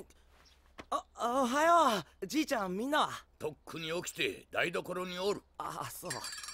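A young man speaks cheerfully and laughs.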